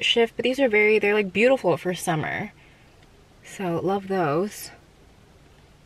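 A young woman talks expressively, close to a microphone.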